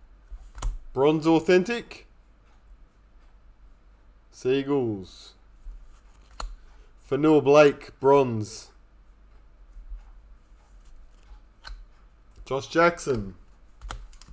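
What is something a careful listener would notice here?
A man talks calmly.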